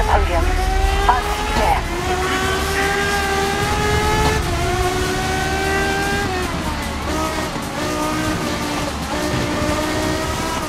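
A race car engine whines loudly at high revs, shifting gears.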